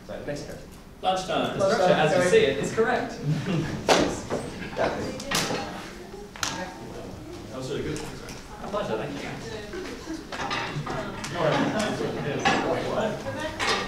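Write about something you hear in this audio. A crowd of young people chatters with animation.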